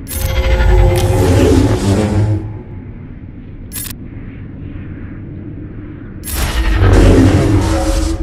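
Blaster shots and lightsaber strikes crackle and boom in a video game battle.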